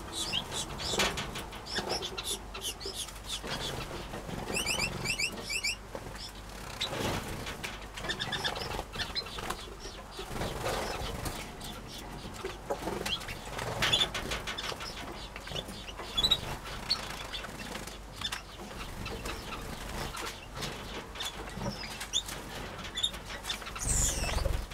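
Small birds chirp and twitter close by.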